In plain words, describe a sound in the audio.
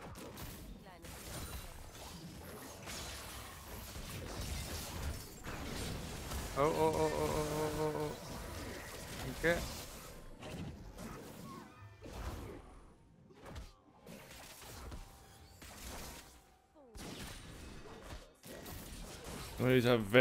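Game spell effects whoosh and zap in quick bursts.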